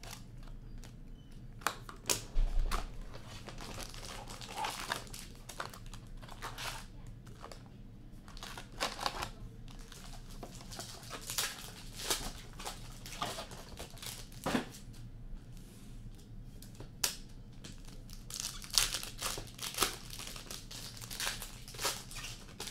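Cardboard packs slide and tap on a table.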